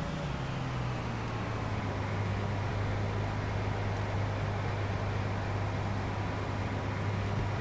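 A combine harvester engine drones steadily.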